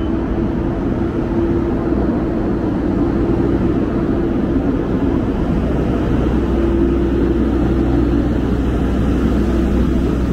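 A motor scooter idles nearby.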